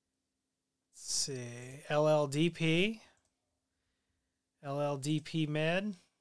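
A man talks calmly and close to a microphone, in short phrases with pauses.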